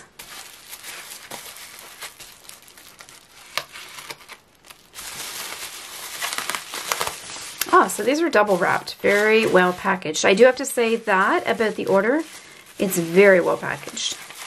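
Plastic bubble wrap crinkles and rustles.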